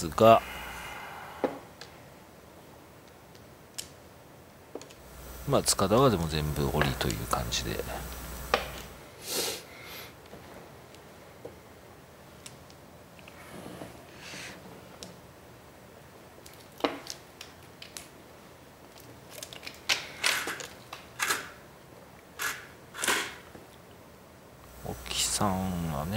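Mahjong tiles click sharply as they are placed and moved on a table.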